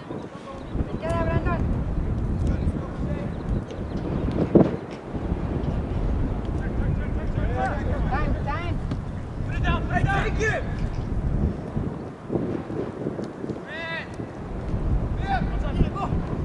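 Young players shout to each other in the distance.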